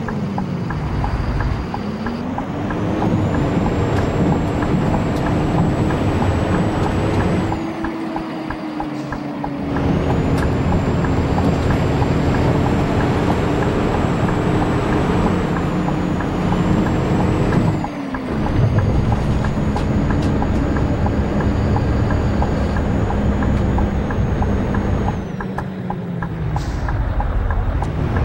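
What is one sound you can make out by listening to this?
A heavy bus engine drones and rises in pitch, dropping away briefly at each gear change.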